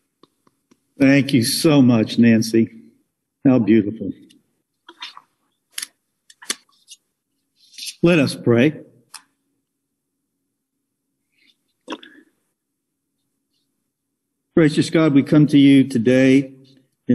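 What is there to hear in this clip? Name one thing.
An elderly man speaks calmly over an online call, in short phrases with pauses.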